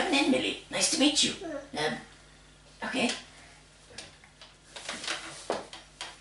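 A little girl talks and laughs excitedly up close.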